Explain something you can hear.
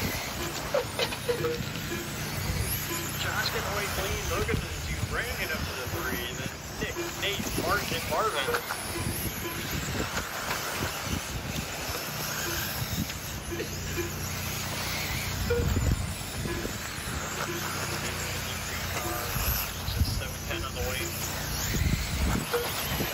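Small electric model cars whine as they race around a dirt track.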